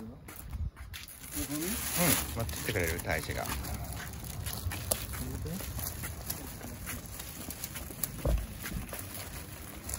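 Plastic bags rustle and crinkle as they are carried.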